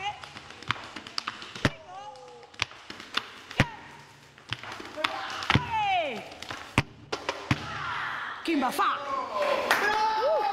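Hard shoes stamp and tap sharply on a wooden floor in a quick dance rhythm.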